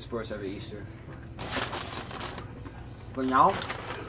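A young man crunches chips.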